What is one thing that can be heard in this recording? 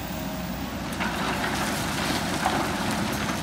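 Rocks and soil pour from an excavator bucket into a truck bed.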